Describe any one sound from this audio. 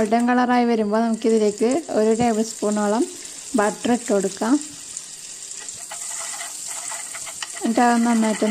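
Butter sizzles and crackles as it melts in hot oil.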